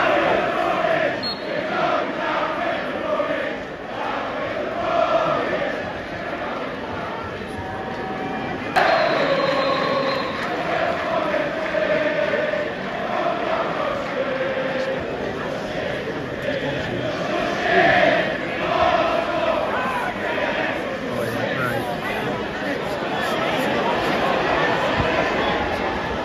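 Football fans nearby cheer and shout.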